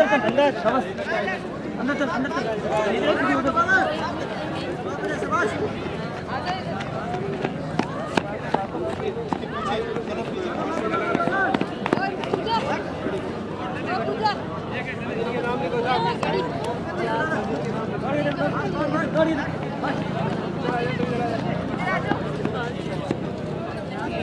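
Several men and women call out and talk loudly outdoors.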